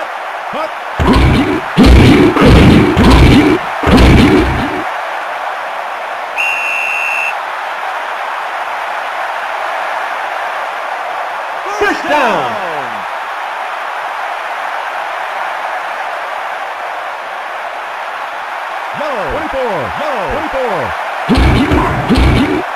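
Padded players collide with heavy thuds.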